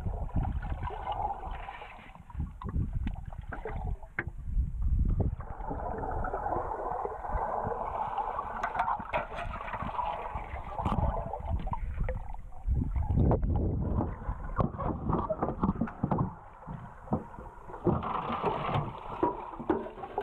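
Metal cans knock and clink against the bottom underwater.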